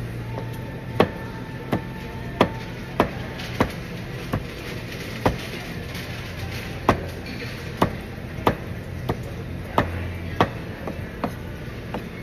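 A knife chops on a wooden board in sharp, steady knocks.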